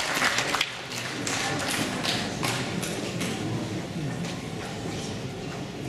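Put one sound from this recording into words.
A woman speaks through a microphone in a large hall.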